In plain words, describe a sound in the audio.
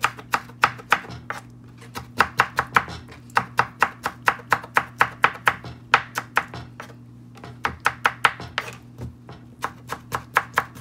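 A knife chops quickly on a wooden board.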